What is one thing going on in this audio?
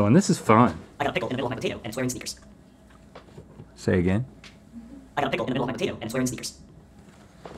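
A young man speaks calmly to the listener.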